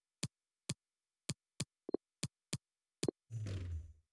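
Short sharp clicks tick at an even pace.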